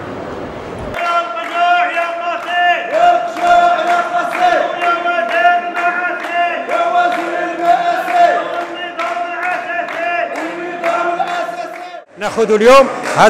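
A group of people claps in rhythm.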